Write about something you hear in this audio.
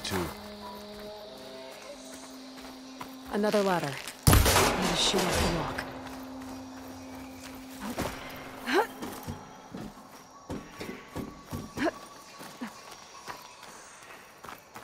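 Footsteps thud on stone and grass.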